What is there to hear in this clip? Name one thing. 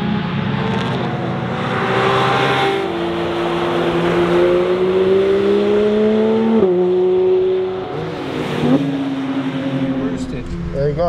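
A sports car engine roars loudly as it accelerates, its pitch rising and dropping with gear changes.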